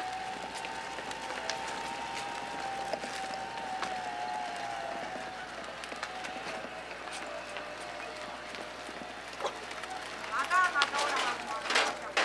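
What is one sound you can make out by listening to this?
Tyres crunch over a rough lane.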